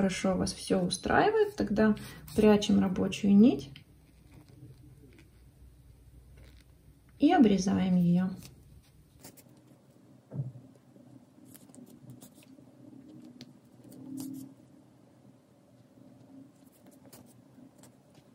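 Yarn rustles softly as a needle pulls it through crocheted stitches.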